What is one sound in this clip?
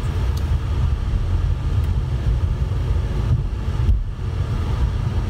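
Wind blows hard outdoors, buffeting with a low rumble.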